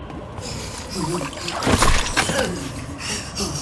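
A large creature growls and snarls.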